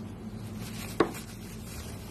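A slab of cheese thumps down onto a wooden board.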